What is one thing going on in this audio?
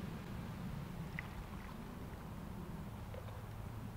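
Liquid pours and splashes through a funnel.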